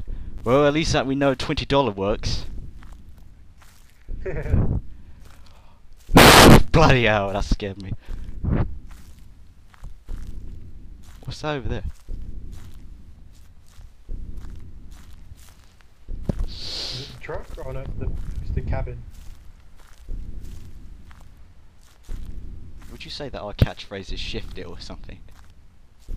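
A young man talks with animation into a headset microphone.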